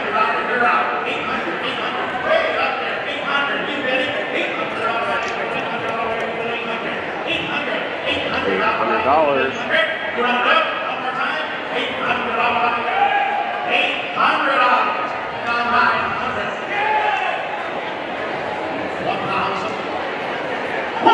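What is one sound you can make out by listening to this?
A man speaks with animation through a loudspeaker, echoing in a large hall.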